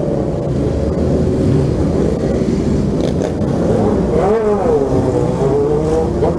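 Many motorcycle engines rumble and rev close by.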